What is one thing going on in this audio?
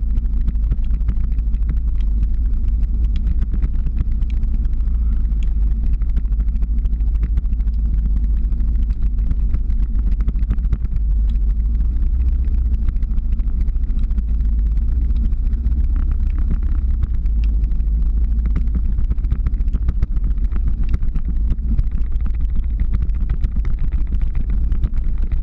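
Ski poles click and scrape on the road.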